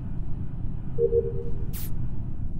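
A short electronic chime rings as a task finishes.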